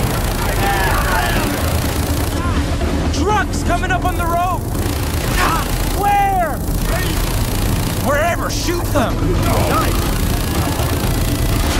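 A mounted machine gun fires rapid bursts.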